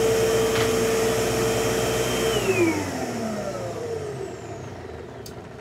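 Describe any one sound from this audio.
A vacuum cleaner motor hums loudly, then winds down and stops.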